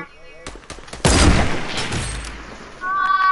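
A rifle fires a single loud shot that rings out and fades.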